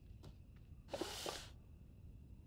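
Small objects rattle inside a cardboard box.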